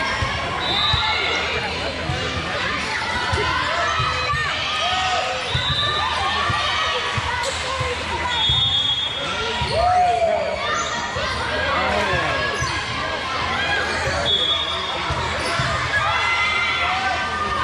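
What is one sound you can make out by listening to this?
Many voices chatter and call out across a large echoing gym.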